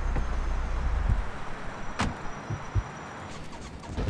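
A car door slams shut.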